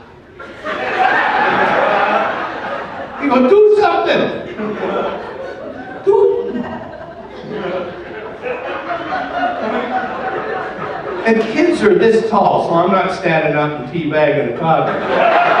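An elderly man talks with animation into a microphone, heard over a loudspeaker.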